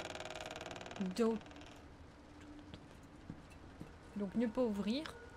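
A young woman speaks briefly and expressively into a close microphone.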